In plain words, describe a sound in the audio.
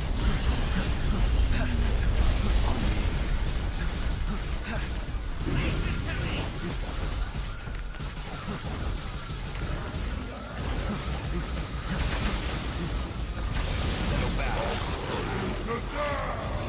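Heavy magical blasts boom and rumble.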